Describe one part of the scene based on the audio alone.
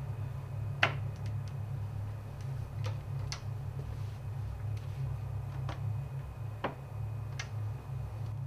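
A door opens and shuts with a knock.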